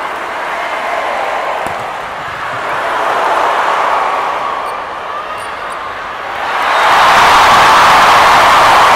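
A large crowd cheers and chants loudly in a big echoing arena.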